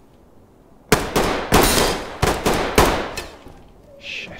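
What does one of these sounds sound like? Rifle shots crack loudly in a quick series, echoing off nearby walls.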